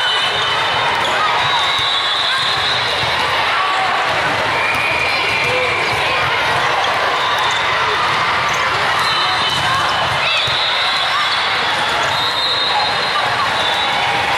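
A large crowd chatters and cheers throughout a big echoing hall.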